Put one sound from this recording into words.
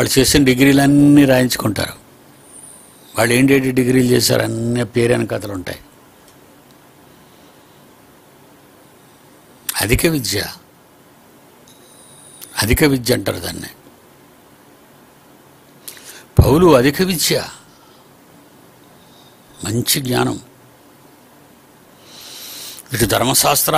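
An elderly man speaks emphatically into a close microphone, in short bursts with pauses.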